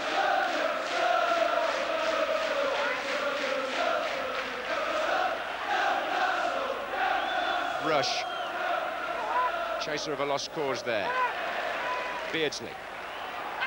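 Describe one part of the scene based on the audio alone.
A large stadium crowd chants and roars loudly.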